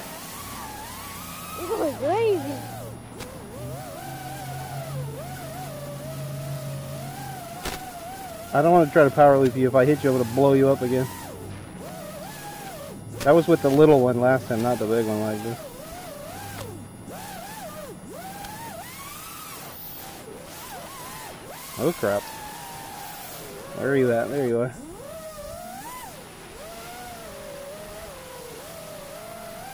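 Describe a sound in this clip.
A model plane's small motor buzzes, its pitch wavering up and down.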